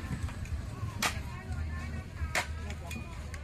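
Bamboo tubes knock sharply against a metal edge.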